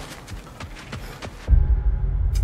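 Footsteps thud quickly on soft ground.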